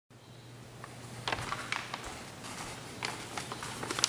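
Paper rustles and crinkles in a hand.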